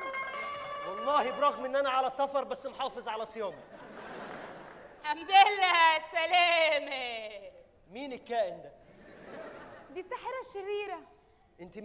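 A man speaks loudly and theatrically, heard through a microphone.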